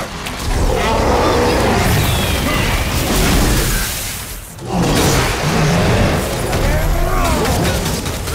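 Monsters growl and roar.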